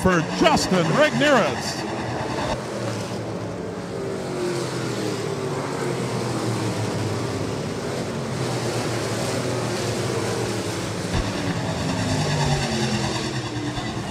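Several race car engines roar and drone as the cars speed around a track.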